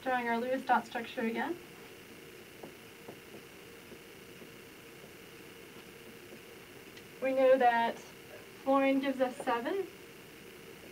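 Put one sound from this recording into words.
A young woman speaks calmly, in short bursts, close to a microphone.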